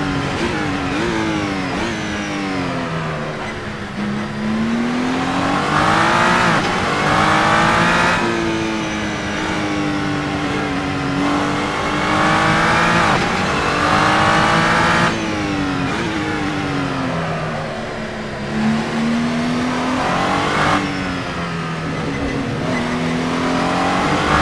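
A racing car engine roars, revving up and down as it shifts gears.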